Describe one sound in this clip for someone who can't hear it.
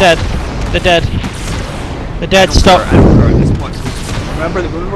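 Plasma blasts explode with loud booms.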